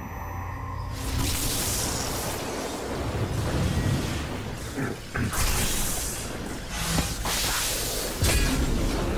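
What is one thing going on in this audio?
Magical energy roars and swirls loudly.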